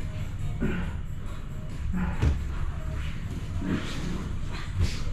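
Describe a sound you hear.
Bodies thump and shuffle on padded mats in a large echoing room.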